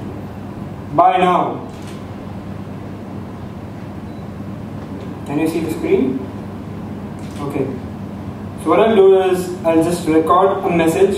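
A man speaks slowly through a microphone, with long pauses.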